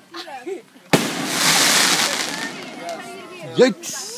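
Firework sparks crackle and hiss after a bang.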